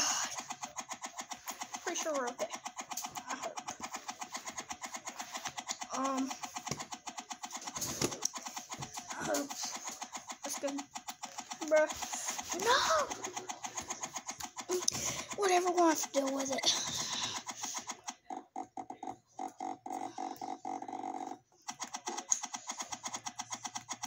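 Game blocks are placed with quick, repeated clicking taps.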